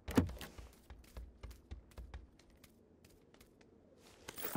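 Footsteps thud quickly across a hard wooden floor.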